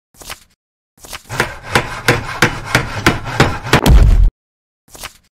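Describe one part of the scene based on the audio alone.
A burst of clattering crafting noise rattles quickly and then stops.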